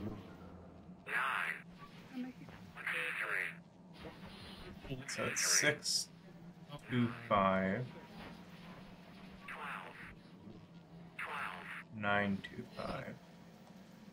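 A man speaks quickly, heard through a crackling radio.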